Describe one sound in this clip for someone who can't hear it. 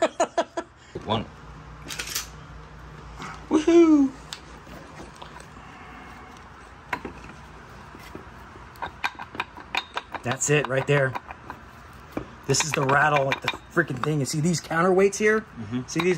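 Metal engine parts clink and knock as hands handle them.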